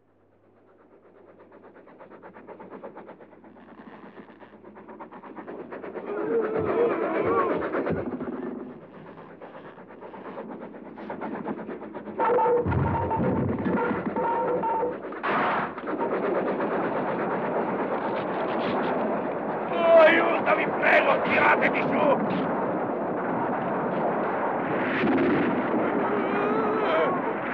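A steam train chugs and clatters along a track.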